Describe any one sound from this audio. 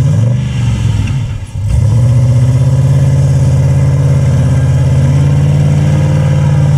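Knobby tyres churn through mud.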